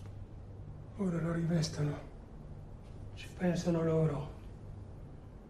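A man speaks quietly in a low voice.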